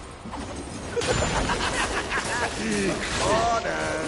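Blows and fiery bursts clash loudly in a game battle with a huge monster.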